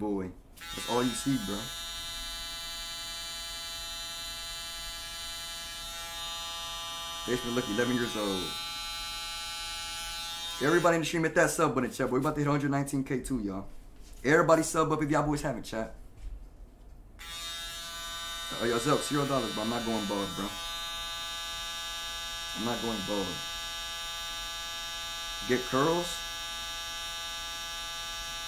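Electric hair clippers buzz steadily.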